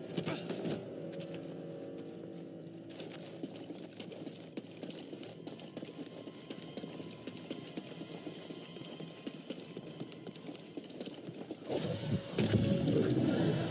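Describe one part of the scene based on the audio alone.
Footsteps patter quickly over rock.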